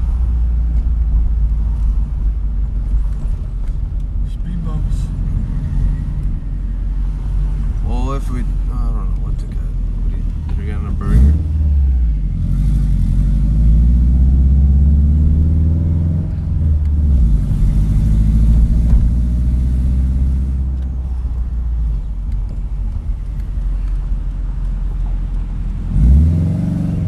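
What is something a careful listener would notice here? Tyres roll on pavement.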